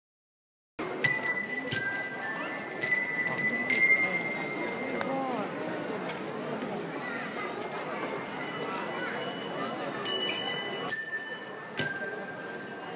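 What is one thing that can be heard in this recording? Tambourines jingle and rattle in sharp bursts.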